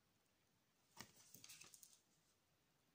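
A card slides and taps onto a table.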